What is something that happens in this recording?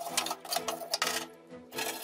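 A wire brush scrapes hard against rusty metal.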